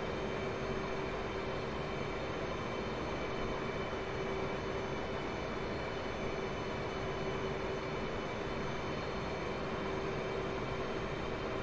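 A jet engine roars steadily, heard from inside the cockpit.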